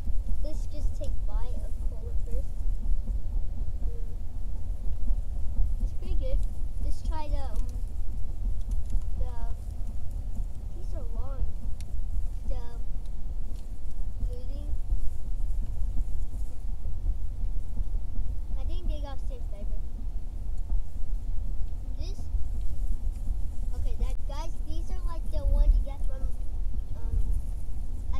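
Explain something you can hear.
A young boy talks nearby with animation.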